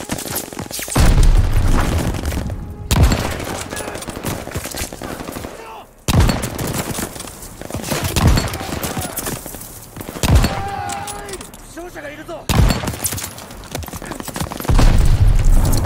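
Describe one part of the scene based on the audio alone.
A rifle fires sharp, loud shots one after another.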